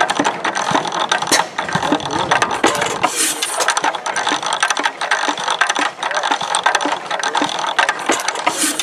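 An old engine clatters and rattles steadily.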